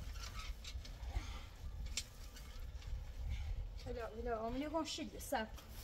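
A shovel scrapes across sandy ground.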